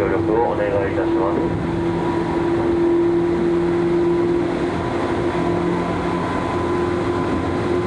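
A train rumbles steadily along the tracks, heard from inside a carriage.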